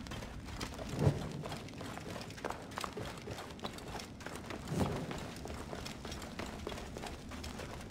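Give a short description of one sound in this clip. A torch flame crackles close by.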